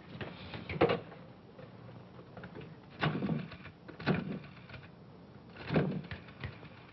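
A man rummages and knocks about in furniture with sharp thumps.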